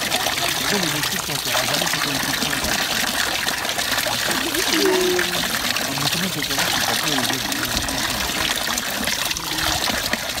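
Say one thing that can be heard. Hands splash in running water.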